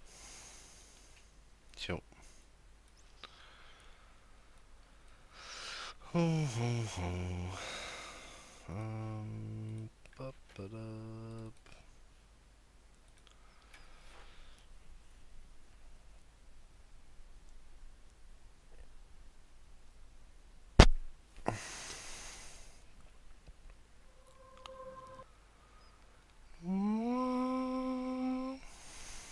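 A man speaks quietly, close to a microphone.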